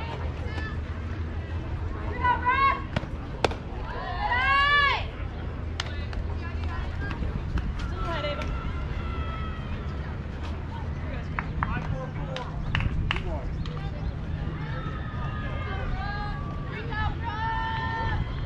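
Young girls shout and cheer from across an open field.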